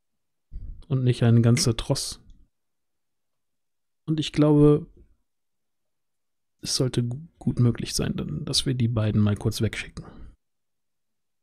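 A man speaks with animation over a headset microphone in an online call.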